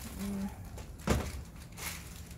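A metal grill lid bangs shut.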